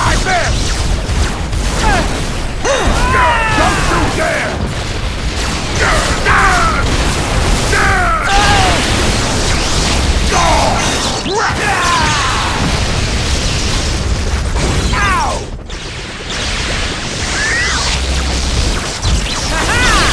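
Energy blasters fire in sweeping bursts.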